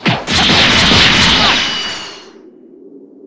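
An explosive blast booms.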